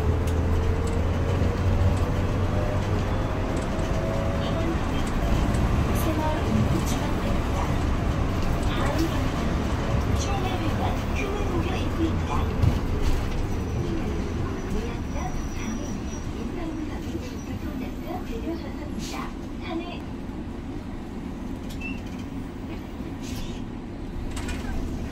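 A bus engine hums steadily from inside the moving bus.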